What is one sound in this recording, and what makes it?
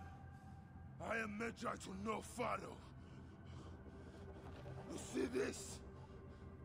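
A man speaks in a low, stern voice.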